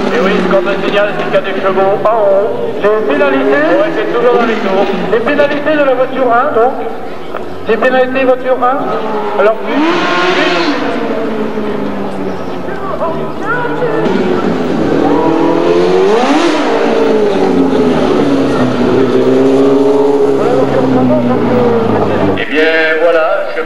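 A racing car engine roars and revs up and down repeatedly.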